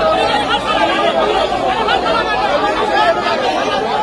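A man shouts angrily nearby.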